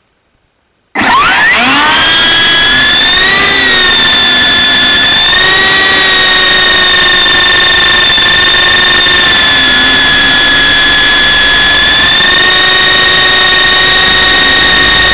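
Small electric motors spin up to a high, steady whine.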